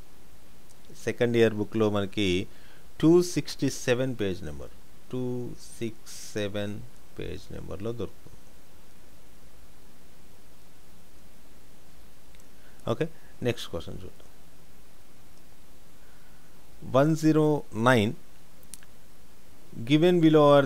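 A man explains calmly into a close microphone, in short bursts with pauses.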